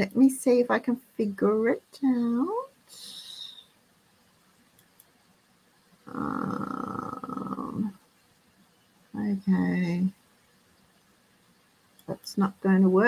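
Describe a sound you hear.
An older woman speaks calmly through an online call.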